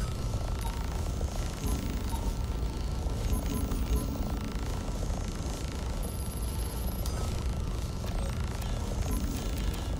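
Menu clicks sound in short beeps.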